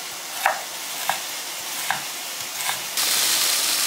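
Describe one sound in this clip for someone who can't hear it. A knife chops through meat on a wooden board with sharp knocks.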